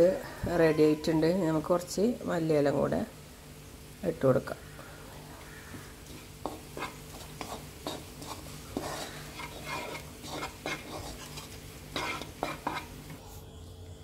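A spatula scrapes and stirs food in a frying pan.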